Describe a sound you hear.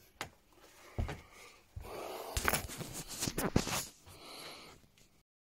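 Fingers rub and knock against a phone close by.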